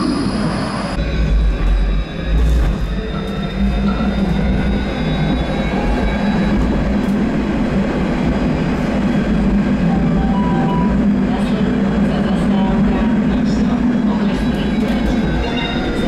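A tram's motor hums and its wheels rumble on the rails from inside the car.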